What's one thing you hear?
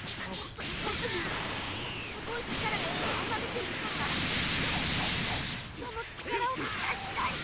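Energy blasts roar and crackle in a fight.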